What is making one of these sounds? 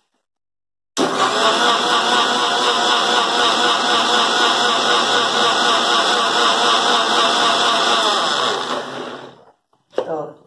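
A mixer grinder whirs loudly at high speed, then winds down.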